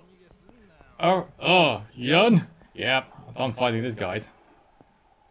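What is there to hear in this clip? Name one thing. A young man exclaims loudly and with animation, close to a microphone.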